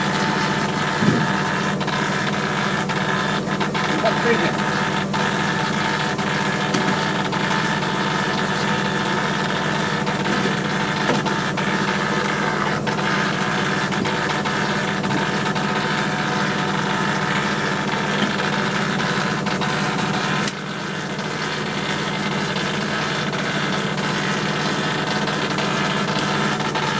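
A wet fish slaps down onto a table.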